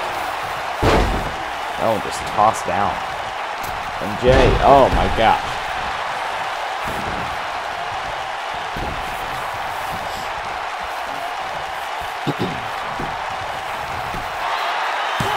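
A crowd cheers and murmurs steadily in a large arena.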